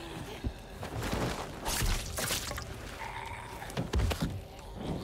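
Heavy blows and thuds land in a scuffle.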